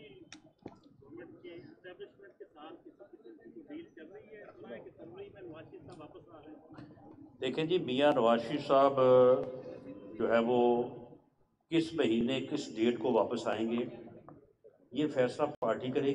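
A middle-aged man speaks firmly into a microphone.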